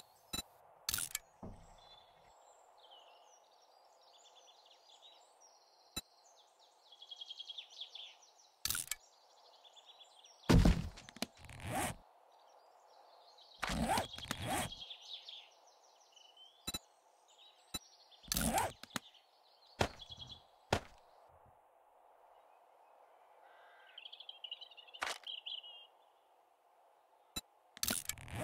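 Short clicks from a game's menu sound now and then.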